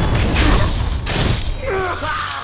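A sword slashes through flesh with a heavy thud.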